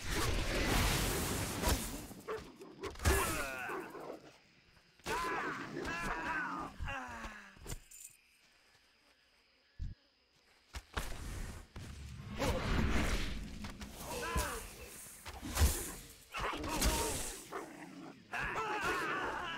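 Weapon blows and spell impacts sound in a fantasy game fight.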